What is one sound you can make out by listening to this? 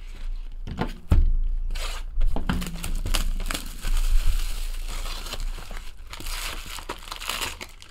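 A cardboard box is torn open.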